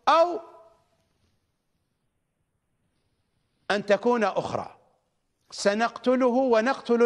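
A middle-aged man speaks emphatically into a microphone, with pauses.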